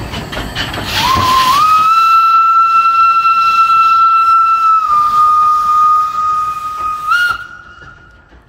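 A steam whistle blows loudly and long.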